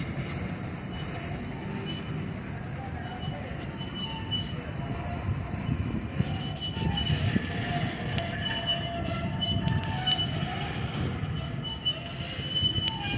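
A freight train's boxcars roll slowly past with a low rumble.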